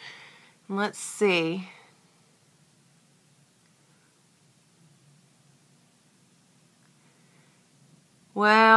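A woman talks calmly and close by, pausing between phrases.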